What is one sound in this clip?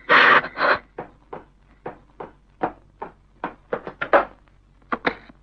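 Footsteps cross a hard floor.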